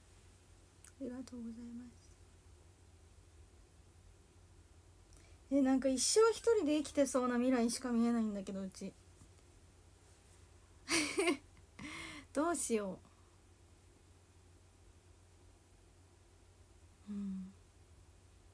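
A young woman speaks close to a microphone, with animation and in bursts.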